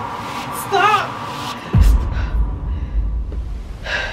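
Bedding rustles as a young woman moves under a duvet.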